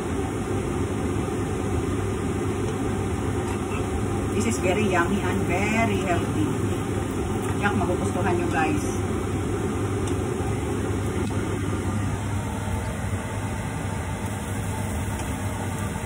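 Pancakes sizzle steadily in hot oil.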